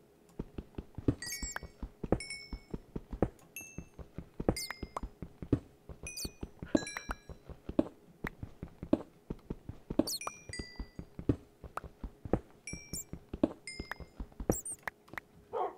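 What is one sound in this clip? Stone blocks crack and crumble under a digging tool in a video game.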